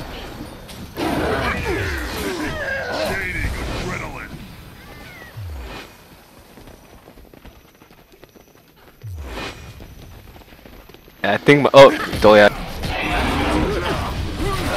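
Weapons clash and strike in combat.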